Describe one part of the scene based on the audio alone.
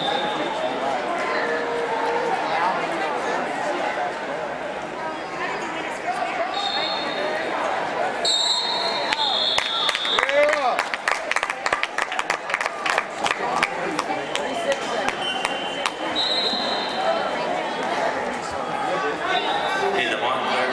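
A crowd of people shouts and cheers in a large echoing hall.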